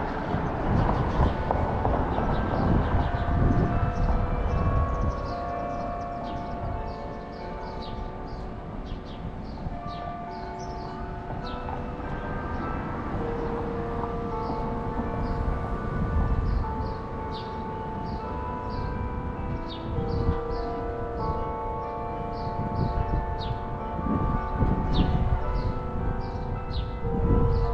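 Chimes play a slow tune from a clock tower.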